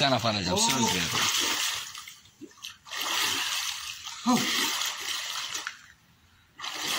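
Water splashes as a swimmer paddles and dives.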